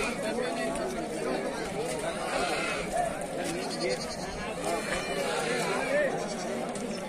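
A crowd of men and women chatters all around.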